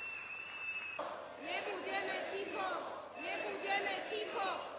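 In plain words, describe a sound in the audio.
A large crowd chants loudly in unison.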